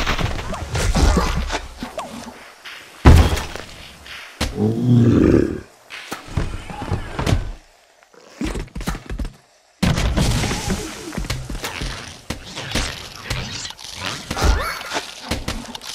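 Cartoon plants fire off a rapid stream of popping shots.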